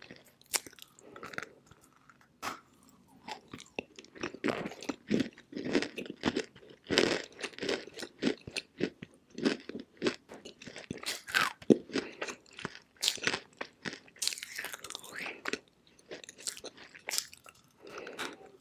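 A young woman bites into a crumbly chalky lump with a crunch.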